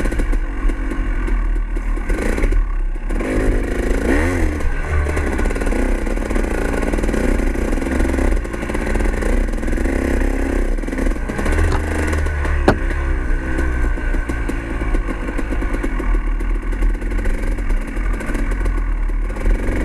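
A motorbike engine revs up and down close by.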